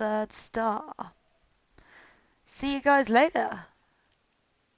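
A young woman speaks close to a headset microphone.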